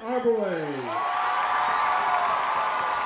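A crowd in the stands cheers and applauds.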